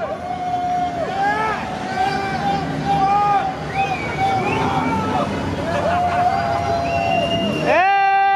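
A group of men cheer and shout in an echoing space.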